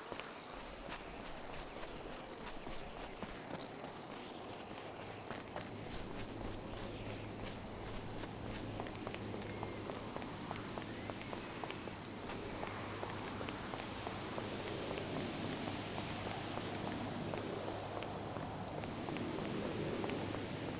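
Footsteps run quickly.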